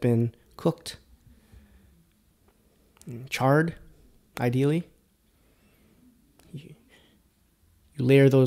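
A man speaks calmly and close into a microphone, in short bursts with pauses.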